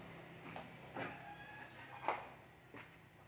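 A man's footsteps thud on wooden boards.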